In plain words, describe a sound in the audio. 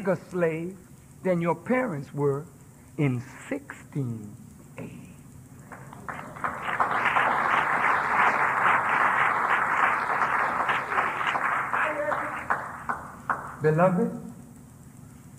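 A man speaks forcefully into a microphone.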